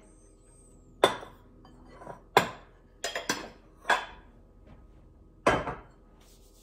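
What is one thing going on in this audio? A glass bowl knocks and clinks against a counter.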